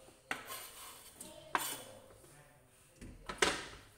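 Food slides off a cutting board into a pot.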